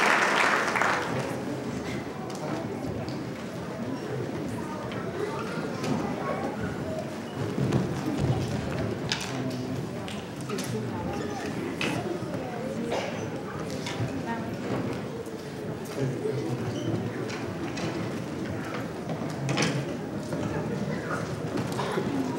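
Children murmur and chatter quietly in a large echoing hall.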